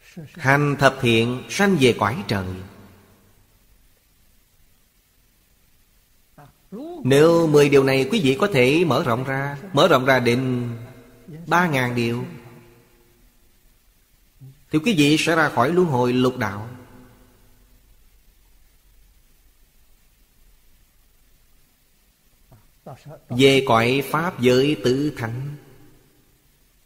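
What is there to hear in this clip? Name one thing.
An elderly man speaks calmly and close to a microphone, in short phrases with pauses.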